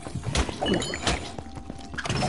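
An explosion booms with a deep thud.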